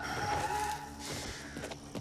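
A gun fires a short burst nearby.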